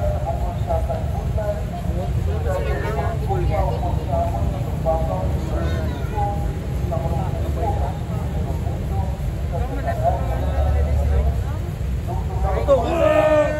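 Several young men talk and call out with animation outdoors.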